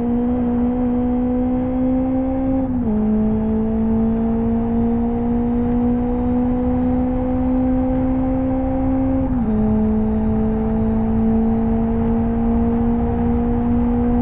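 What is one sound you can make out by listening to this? A racing car engine drones loudly, its pitch rising slowly and dropping sharply at each gear change.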